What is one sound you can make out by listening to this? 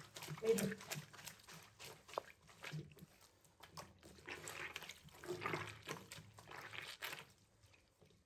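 A brush scrubs and swishes in water in a sink.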